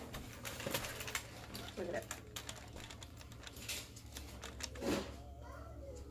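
Cardboard rustles and taps as a box is handled.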